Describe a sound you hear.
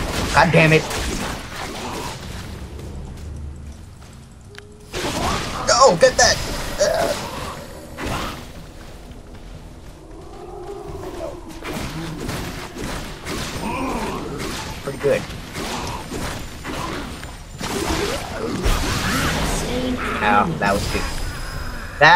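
Game spell effects crackle and blast in a fight.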